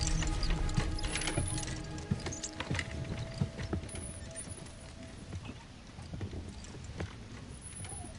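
A stretcher's wheels rattle and squeak across a hard floor.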